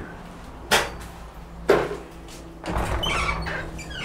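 A door latch clicks and the door swings open.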